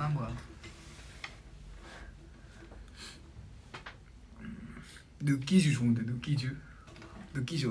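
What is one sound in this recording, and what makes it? Two young men talk quietly close by.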